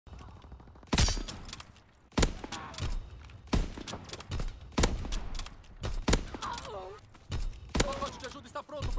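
A sniper rifle fires loud, sharp shots at a steady pace.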